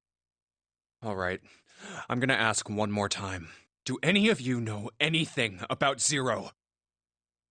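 A man speaks into a close microphone, reading out with animation.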